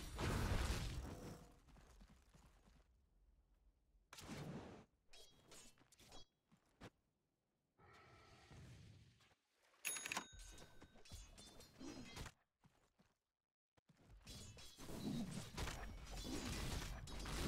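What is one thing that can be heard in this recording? Magic blasts and weapon hits crackle and clash in a fight.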